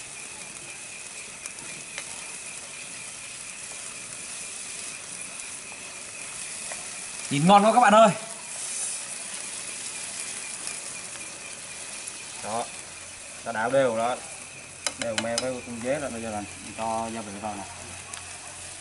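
Food bubbles and sizzles in a pan.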